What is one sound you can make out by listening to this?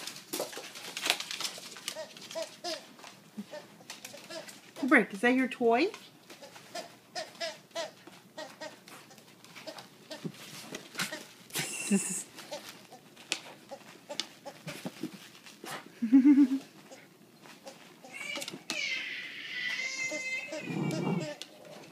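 A small dog's claws click and scrabble on a wooden floor.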